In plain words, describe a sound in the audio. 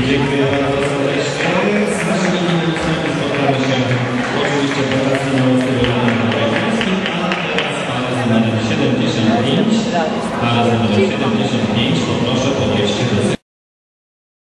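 Ballroom dance music plays over loudspeakers in a large echoing hall.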